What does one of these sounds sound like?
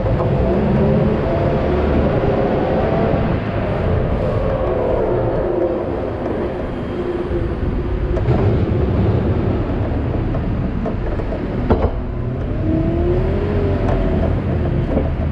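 A hydraulic pump whines, rising and falling in pitch.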